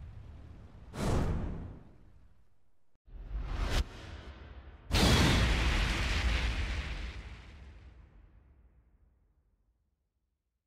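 A deep explosion booms and rumbles away.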